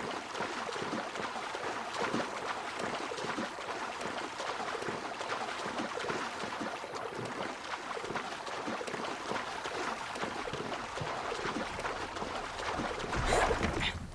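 Water splashes with steady swimming strokes.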